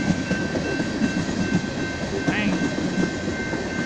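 A railway crossing bell rings steadily.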